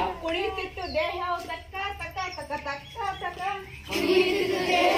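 A woman speaks loudly outdoors.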